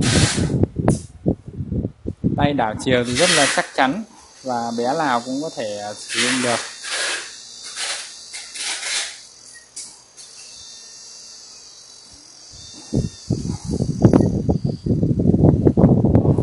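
An electric motor whirs.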